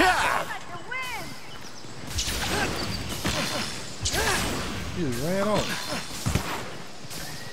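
Heavy blows clang and thud in a fight.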